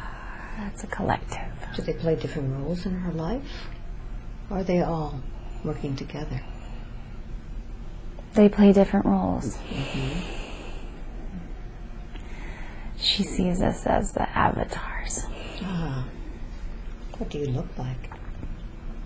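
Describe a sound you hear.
A young woman talks sleepily and slowly, close by.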